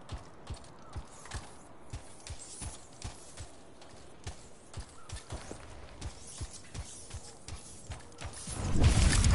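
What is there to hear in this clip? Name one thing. Heavy footsteps thud at a steady running pace.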